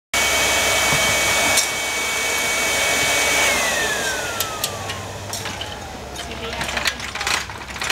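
An electric blower whirs loudly, then winds down and stops.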